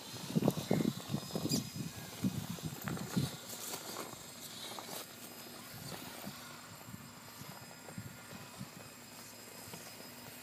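Plastic tyres scrape and bump against stone.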